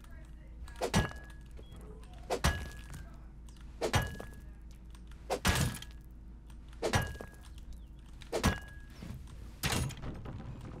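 A metal hammer strikes a wall in slow, even blows.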